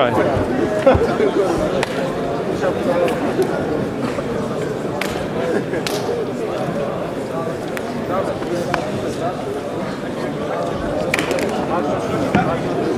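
Two wrestlers' bodies rustle and thump against a mat.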